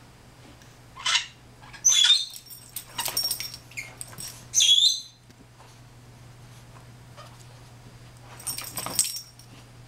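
A puppy growls and yelps playfully up close.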